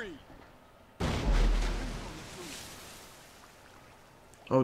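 A heavy object splashes into the sea.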